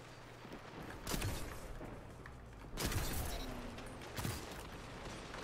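Loud rifle shots crack with a booming echo.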